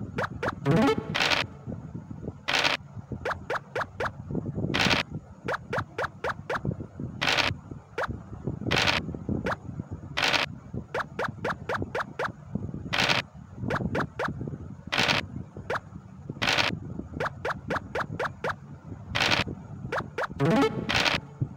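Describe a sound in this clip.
Dice rattle and roll again and again.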